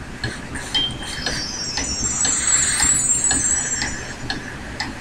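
A magical chime twinkles up and down.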